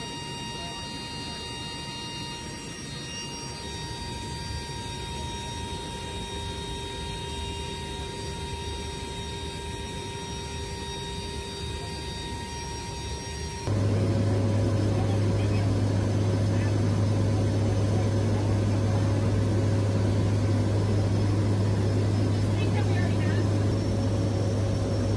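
Aircraft engines drone steadily inside the cabin.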